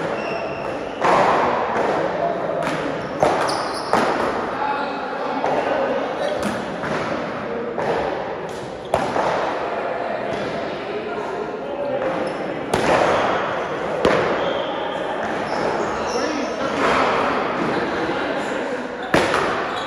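Paddles smack a ball back and forth with sharp cracks that echo in a large hall.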